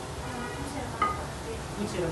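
A steel pan knocks against a stove grate.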